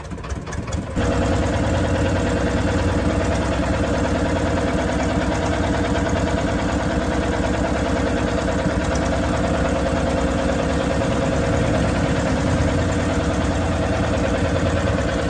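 A boat engine roars steadily close by.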